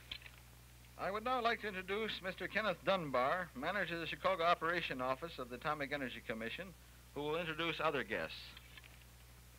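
A man speaks into microphones at a podium, heard through a loudspeaker outdoors.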